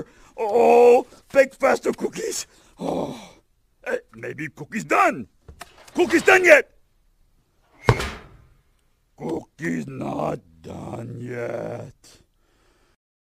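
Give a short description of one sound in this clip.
A man speaks in a gruff, growly puppet voice with animation.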